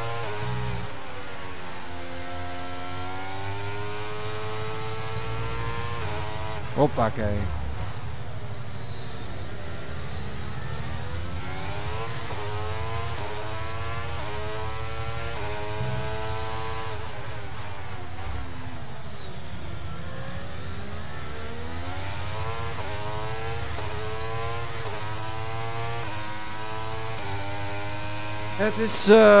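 A racing car engine whines loudly, rising and falling in pitch as the car speeds up and brakes.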